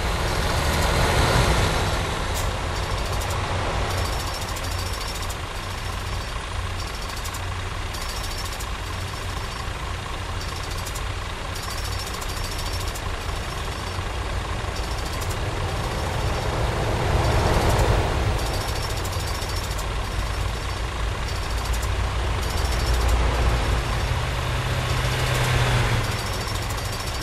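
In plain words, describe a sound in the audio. Oncoming vehicles whoosh past one after another.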